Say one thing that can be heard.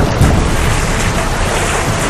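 Water splashes as a person swims.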